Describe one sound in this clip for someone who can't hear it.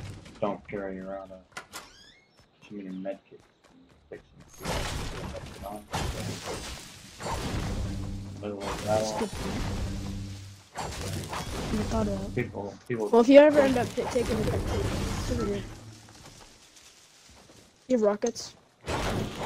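A man talks with animation into a headset microphone.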